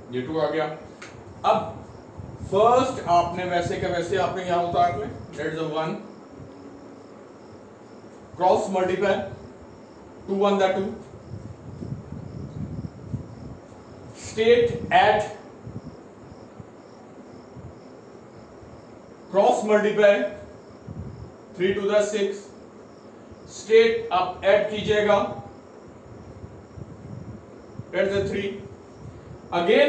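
A middle-aged man explains with animation, close by, in short bursts with pauses.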